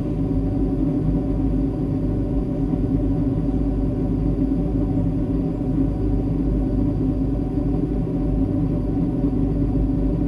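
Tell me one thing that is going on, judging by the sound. Jet engines drone steadily and loudly inside an airliner cabin in flight.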